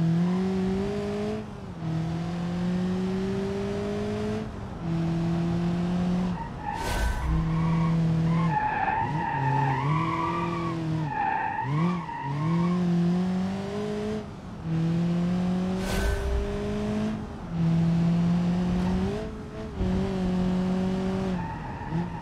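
A car engine revs up and drops through the gears.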